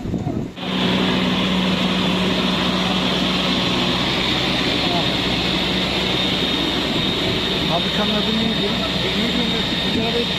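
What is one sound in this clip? A fire engine pump drones steadily nearby.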